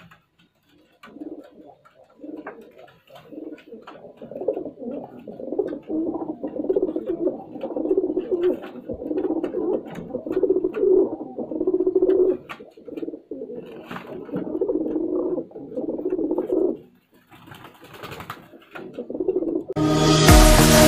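Pigeons coo in deep, rolling pulses close by.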